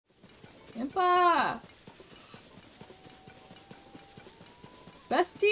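A young woman exclaims with animation into a microphone.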